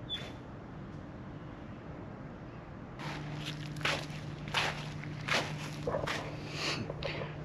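Footsteps crunch on dry pine needles.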